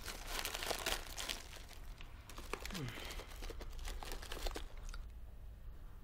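A plastic wrapper crinkles and rustles close by.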